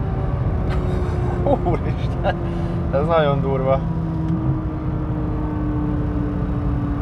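A car engine hums steadily with loud road rumble inside the cabin.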